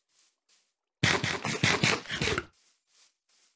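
Fire roars briefly in a burst.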